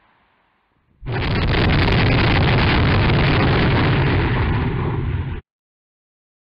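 A volcano erupts with a loud, steady roar.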